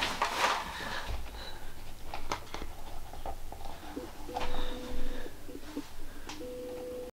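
Clothing rustles against the microphone.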